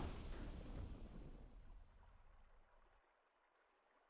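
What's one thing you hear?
A triumphant victory fanfare from a video game swells and slowly fades away.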